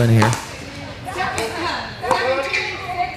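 A paddle hits a ball with a sharp pop.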